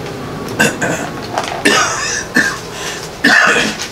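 An elderly man coughs.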